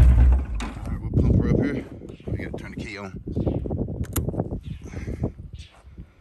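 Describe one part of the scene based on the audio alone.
A motorcycle engine idles close by.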